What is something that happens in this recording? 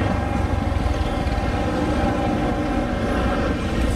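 Motorbike engines hum as they pass close by.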